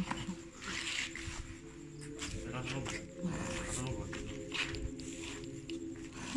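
Leaves rustle and brush against each other.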